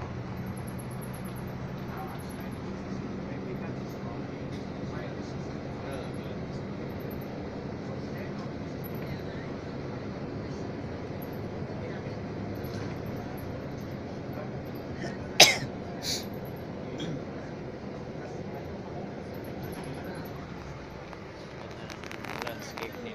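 Tyres rumble on the road beneath a moving bus.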